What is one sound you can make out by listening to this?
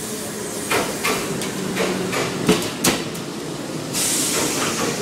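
A train rumbles and clatters past on the tracks.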